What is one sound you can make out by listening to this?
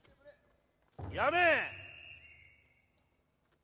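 A man shouts sharply in a large echoing hall.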